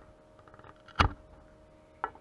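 A small plastic piece knocks against a hard surface.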